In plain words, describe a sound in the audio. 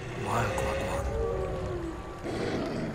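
A wolf howls.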